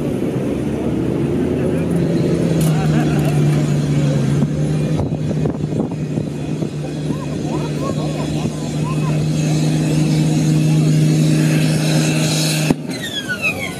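A tractor engine roars loudly under heavy load, then cuts off suddenly.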